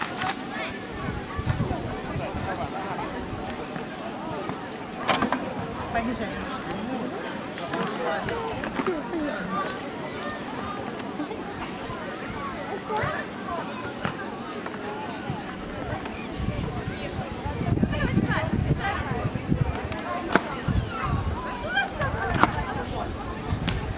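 A crowd of adults and children chatters and calls out nearby outdoors.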